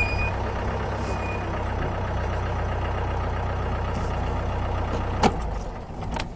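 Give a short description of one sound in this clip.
A vehicle engine idles with a low steady rumble, then shuts off.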